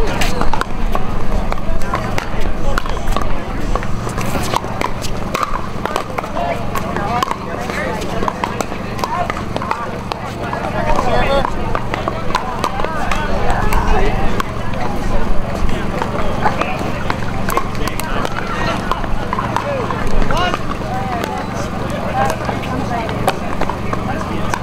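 A crowd of people chatter in the background outdoors.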